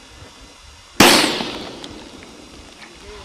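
A gunshot cracks sharply and echoes away.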